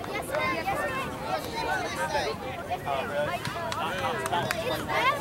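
A crowd of spectators talks and calls out outdoors.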